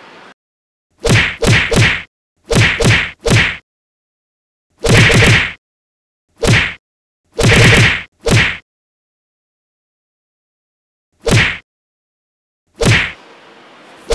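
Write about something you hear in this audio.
Punches whoosh and smack in sharp bursts.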